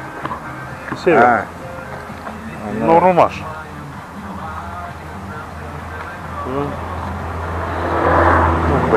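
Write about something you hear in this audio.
An elderly man speaks with animation close by.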